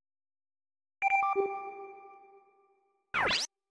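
A bright electronic chime rings and fades.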